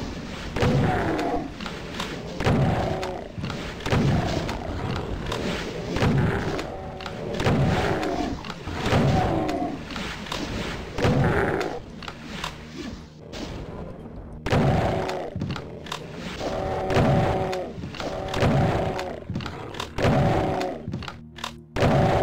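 A shotgun fires loud, booming blasts at a steady pace.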